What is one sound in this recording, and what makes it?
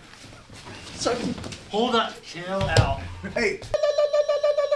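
Bodies thump and scuffle against a leather sofa.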